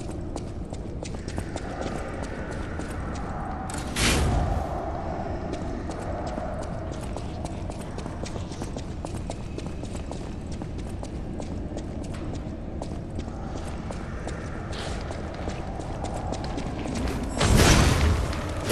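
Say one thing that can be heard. Footsteps clatter quickly on a stone floor.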